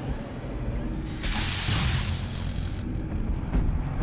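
A large creature growls and roars.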